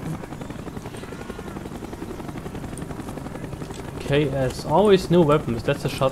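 A helicopter's rotor thumps steadily nearby.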